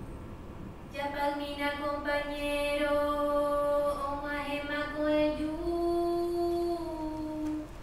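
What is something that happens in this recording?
A woman sings a slow, drawn-out melody.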